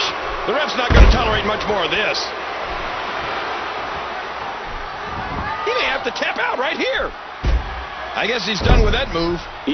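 A heavy body slams onto a wrestling mat.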